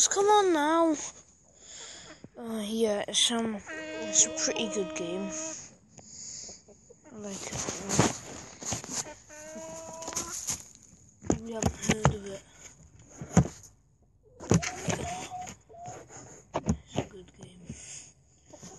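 Chickens cluck and squawk close by.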